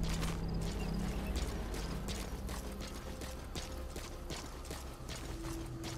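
Footsteps run quickly over gravel and dirt.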